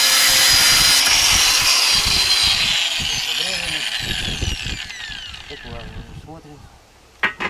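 The motor of an angle grinder winds down and fades.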